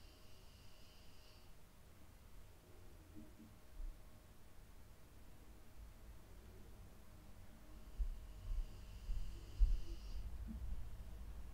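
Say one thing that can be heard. A pen tip scratches softly across bare skin.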